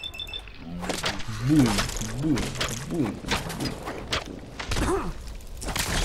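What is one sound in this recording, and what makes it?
Heavy blows thud against a large creature.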